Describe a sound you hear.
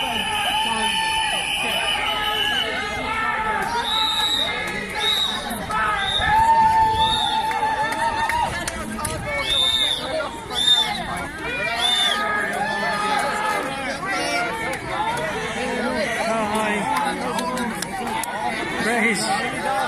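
A crowd of men and women talks and calls out all around outdoors.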